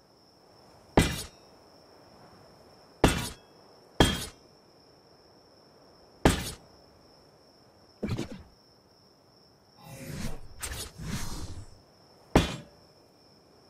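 Heavy metal gates clank and thud into place, one after another.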